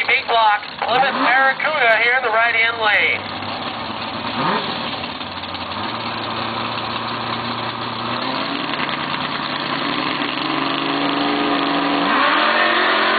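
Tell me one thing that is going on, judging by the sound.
A race car engine idles with a deep, loud rumble.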